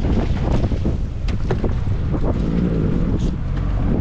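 A large fish thrashes and splashes as it is hauled from the water.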